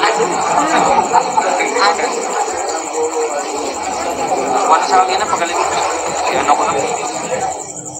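A crowd of young men chatters loudly nearby.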